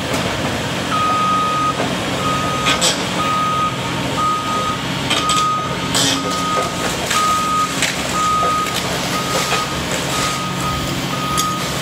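A reversing alarm beeps repeatedly.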